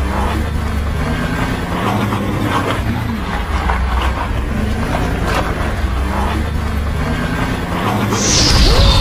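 A truck engine rumbles steadily as the truck drives closer.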